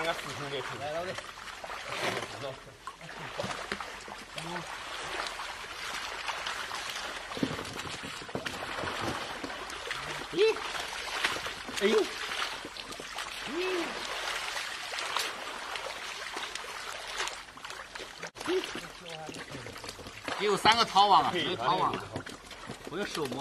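Adult men talk and call out to each other outdoors.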